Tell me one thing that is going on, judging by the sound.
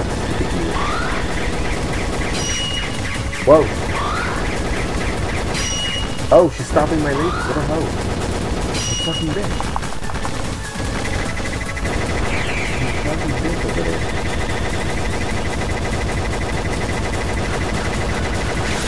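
Rapid electronic laser shots fire continuously.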